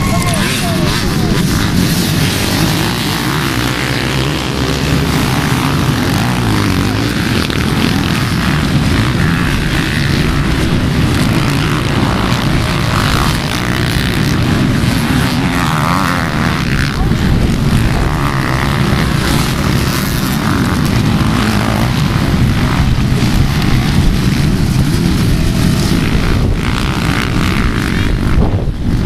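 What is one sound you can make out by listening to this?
Many dirt bike engines roar and rev loudly together outdoors.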